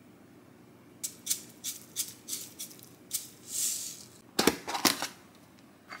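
Sesame seeds rattle as a shaker is tapped over a bowl.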